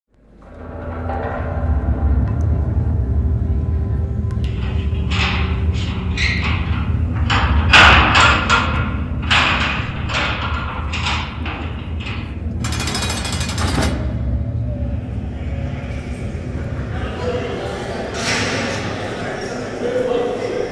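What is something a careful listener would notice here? Loud music with a heavy, steady beat plays through loudspeakers in a large hall.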